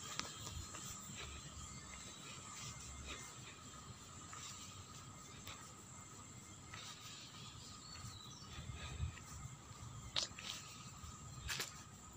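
A middle-aged woman talks quietly close by.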